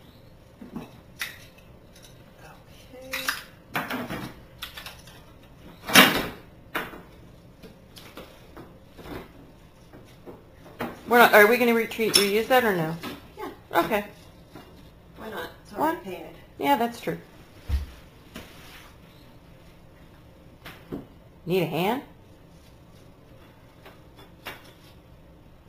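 Small tools click and clatter in a woman's hands.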